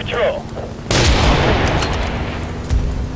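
A rifle fires a single loud shot that echoes away.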